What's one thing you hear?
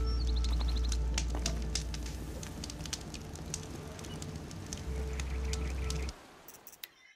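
A campfire crackles and pops.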